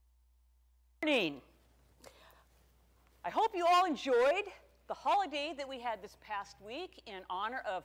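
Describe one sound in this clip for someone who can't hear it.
A woman speaks calmly and clearly up close.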